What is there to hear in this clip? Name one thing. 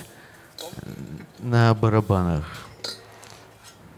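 A cymbal rings softly as a hand touches it.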